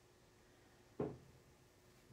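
A plastic ruler knocks lightly on a hard surface.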